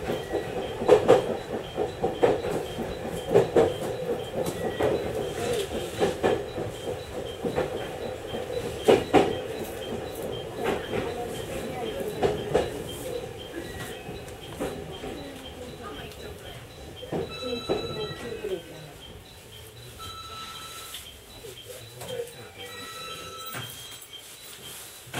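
A train rumbles along the rails, heard from inside, and gradually quietens.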